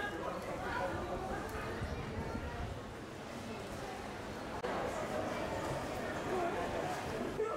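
A crowd murmurs and chatters along a busy street.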